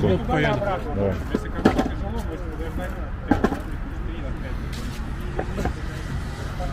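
Skateboards clack against the ground.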